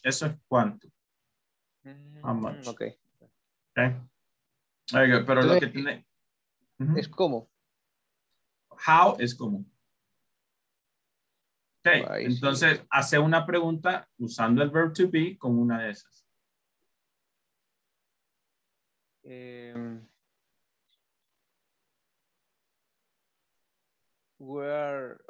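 A young man speaks calmly through an online call, explaining.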